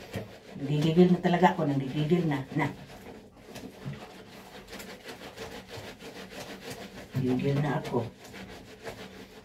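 Wet cloth is scrubbed and squelched in a sink.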